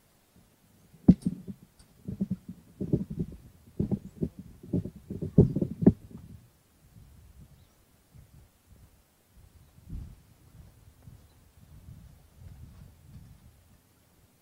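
A man speaks calmly close by, outdoors.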